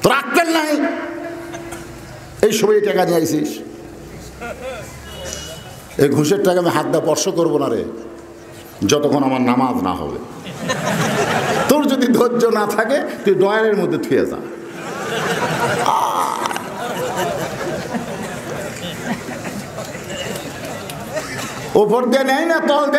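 An elderly man preaches with animation through a microphone and loudspeakers.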